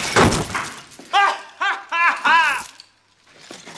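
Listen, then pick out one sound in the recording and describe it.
A man laughs and shouts with glee.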